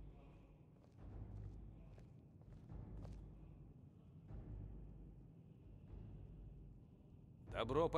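Footsteps thud on a stone floor in a large echoing hall.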